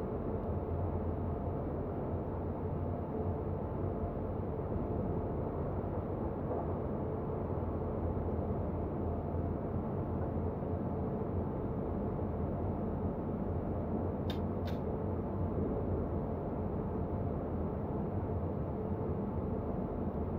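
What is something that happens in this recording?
A train engine rumbles steadily as the train runs along the track.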